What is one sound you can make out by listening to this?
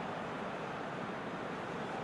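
A large stadium crowd murmurs in the distance.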